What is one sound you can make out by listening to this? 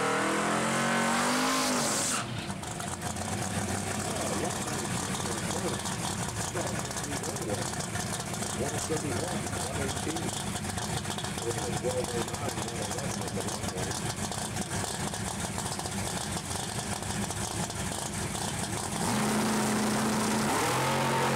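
A hot rod's engine rumbles loudly and roughly.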